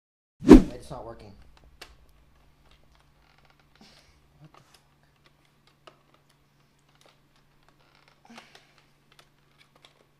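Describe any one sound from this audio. A plastic toy gun clicks and rattles in a man's hands.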